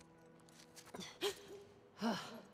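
A young woman gasps in alarm.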